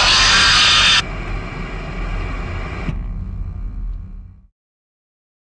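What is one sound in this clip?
Static hisses and crackles, then cuts off.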